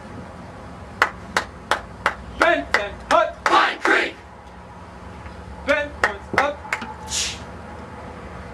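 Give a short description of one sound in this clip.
A large marching band blasts short, loud brass chords outdoors.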